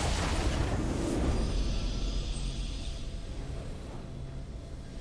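A triumphant fanfare swells loudly and fades away.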